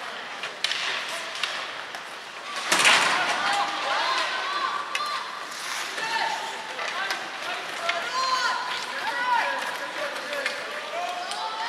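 Skate blades scrape and carve across the ice in a large echoing arena.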